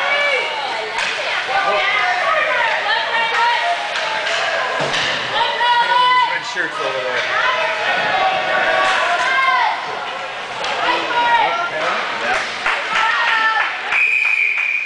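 Young children shout and cheer excitedly in a large echoing hall.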